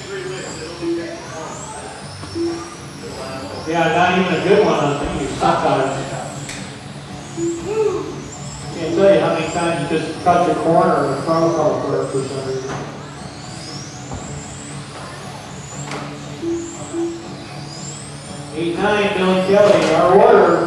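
Small electric race cars whine as they speed up and slow down around a track.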